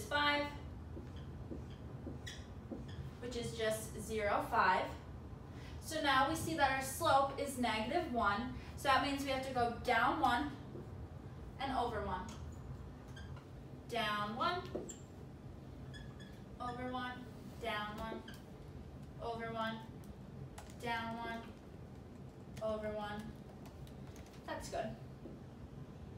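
A young woman speaks calmly and clearly, explaining as she goes.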